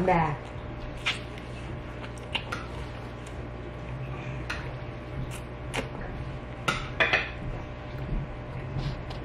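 A toddler smacks her lips while chewing, close by.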